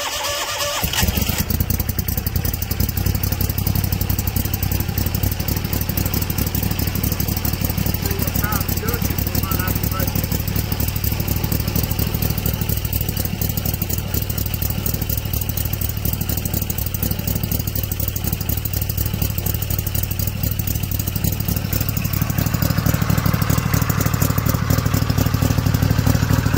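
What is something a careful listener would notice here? A boat motor sputters to life and runs with a steady, loud idle.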